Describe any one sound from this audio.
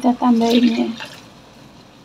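Water pours into a hot wok.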